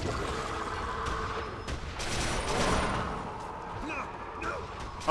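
A heavy gun fires in quick bursts.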